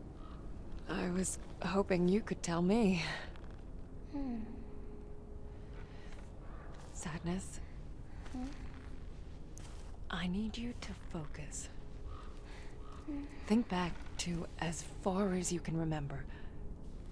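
A woman speaks calmly and softly.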